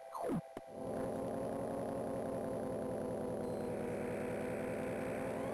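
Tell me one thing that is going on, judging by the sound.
Electronic video game music plays steadily.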